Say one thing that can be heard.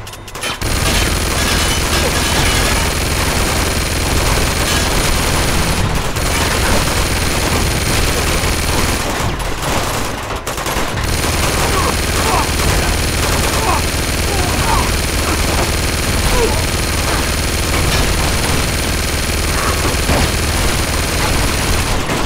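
Bullets ping and thud against stone walls.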